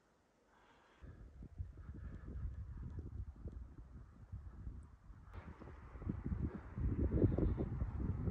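Wind gusts roar across the microphone outdoors.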